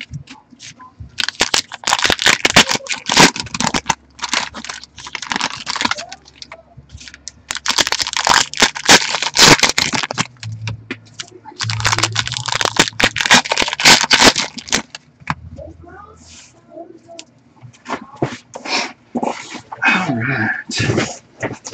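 Cards slap and shuffle against each other.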